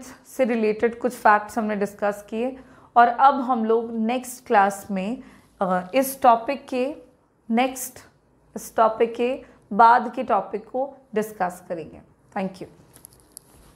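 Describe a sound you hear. A young woman speaks clearly and steadily, close to a microphone.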